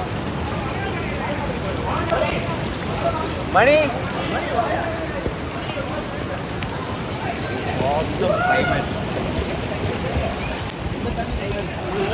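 A young man talks cheerfully close by.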